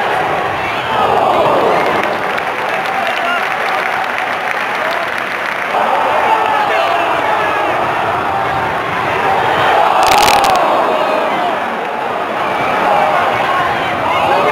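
A large crowd of football fans chants and sings loudly outdoors.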